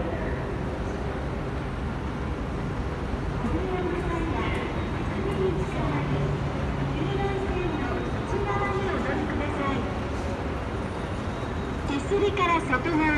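An escalator hums and rattles steadily.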